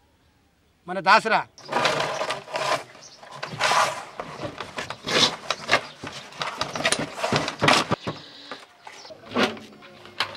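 Hands work on a drum, knocking and rustling.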